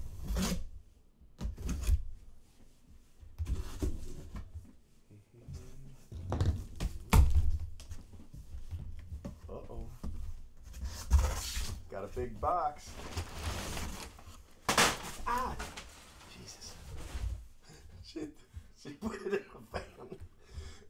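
Cardboard scrapes and thuds as a box is handled and opened.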